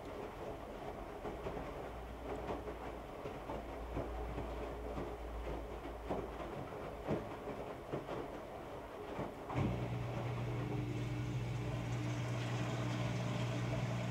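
Clothes thump and tumble inside a spinning washing machine drum.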